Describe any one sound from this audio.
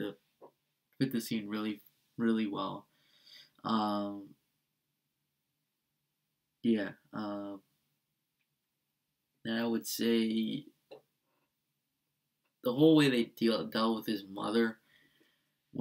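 A man speaks with animation, in short bursts with pauses.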